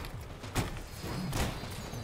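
Energy blasts whoosh and boom.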